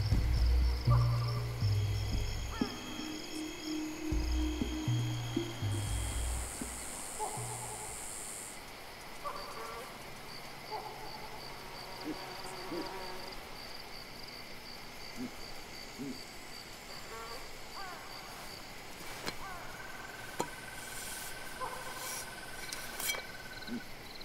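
Birds chirp and call outdoors.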